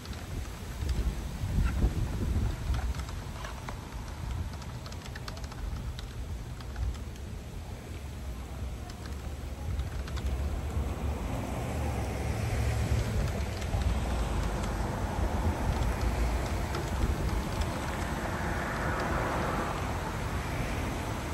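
Keys click softly as a man types on a keyboard.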